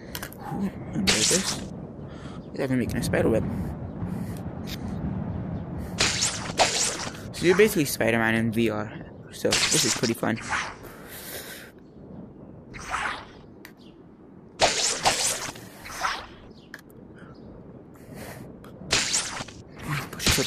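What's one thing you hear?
Web lines shoot out with quick, hissing whooshes.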